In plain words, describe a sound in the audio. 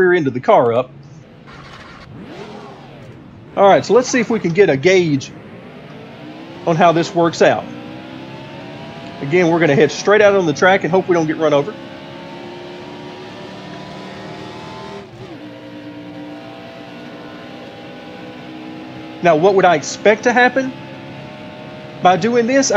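A race car engine drones and rises in pitch as it speeds up.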